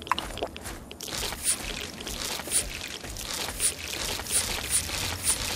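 Footsteps crunch steadily on gravel and dirt.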